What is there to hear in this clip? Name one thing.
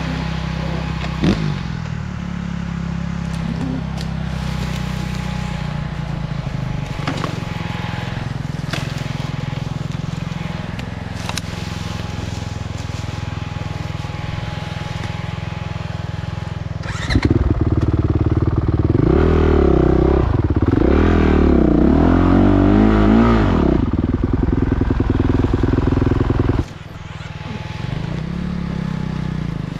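A motorcycle engine idles and revs unevenly.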